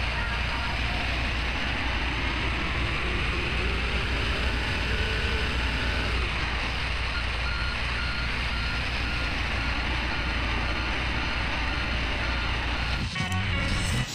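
A diesel soil compactor engine rumbles at low speed.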